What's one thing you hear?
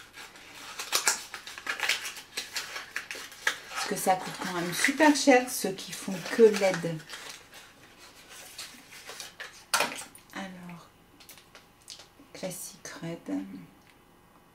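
Small plastic items click and rattle in a woman's hands.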